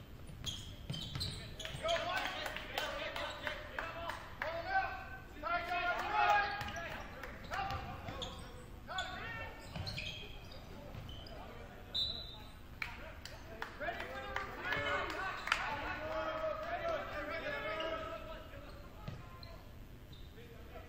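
Spectators in an echoing gym shout and cheer.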